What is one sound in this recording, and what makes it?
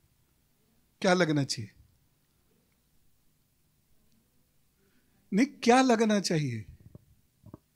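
A middle-aged man speaks calmly into a handheld microphone, in short phrases with pauses.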